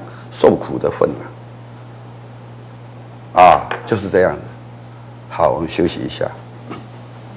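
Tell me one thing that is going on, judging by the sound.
An elderly man speaks calmly and slowly into a close microphone, with pauses.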